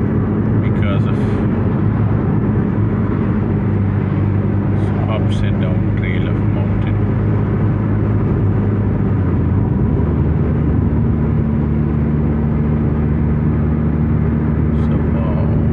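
Tyres rumble on a smooth road.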